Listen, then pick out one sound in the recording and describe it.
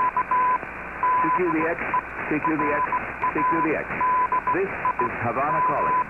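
Warbling, whistling interference wavers in and out over a radio.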